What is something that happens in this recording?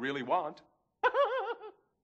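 A young man laughs loudly, high and shrill.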